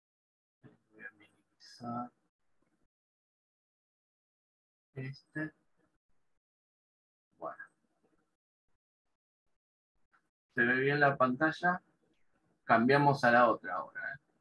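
A man speaks over an online call, in short bursts with pauses.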